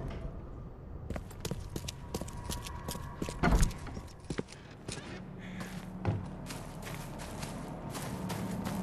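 Footsteps tread quickly over rough ground.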